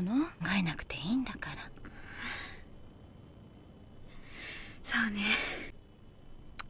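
A young woman speaks softly and gently close by.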